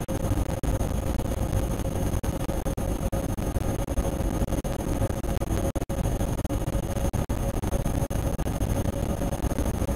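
The traction motors of an electric train whine as it accelerates.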